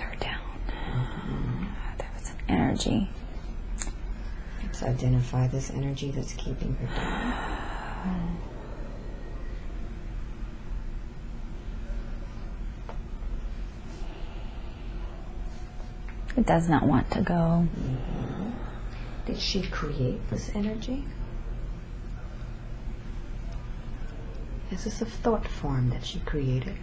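A young woman murmurs and mumbles sleepily, close by.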